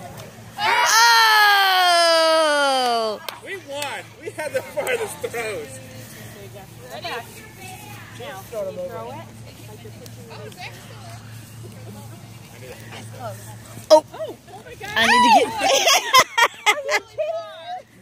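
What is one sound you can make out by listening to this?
A woman close by calls out loudly and excitedly.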